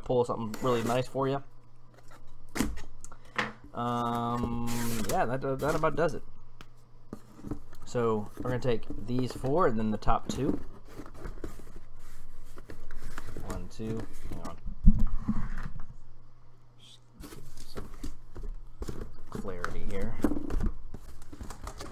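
Cardboard boxes scrape and knock as hands move them.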